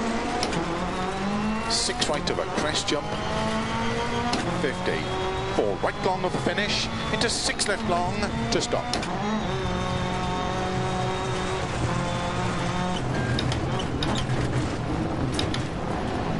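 Gravel crunches and rattles under tyres.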